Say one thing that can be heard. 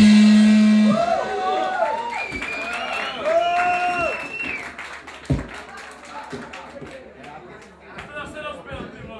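A crowd of young men cheer and shout.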